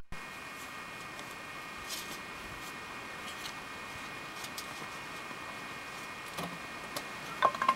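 A man scrapes soil with a trowel.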